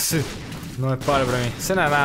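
A small explosion bursts with a muffled boom.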